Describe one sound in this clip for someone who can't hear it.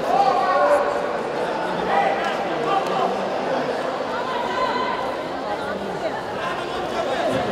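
A crowd of spectators shouts and cheers in a large hall.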